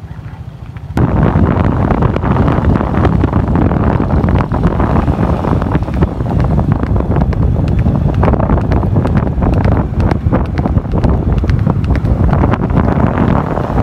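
A horse's hooves clop on pavement.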